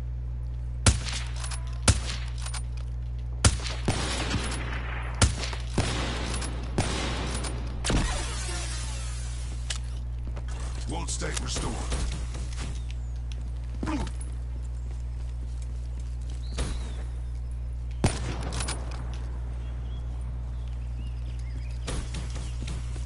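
Gunshots crack sharply in bursts.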